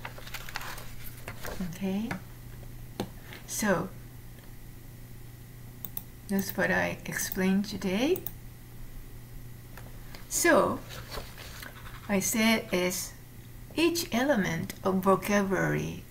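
A woman speaks calmly over an online call, pausing between phrases.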